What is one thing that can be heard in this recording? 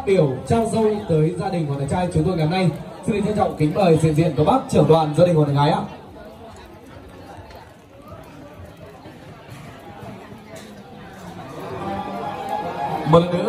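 Many guests chatter in the background.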